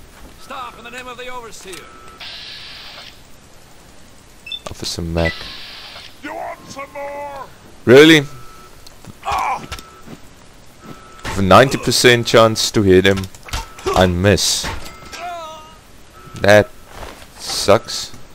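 A man shouts in pain and alarm.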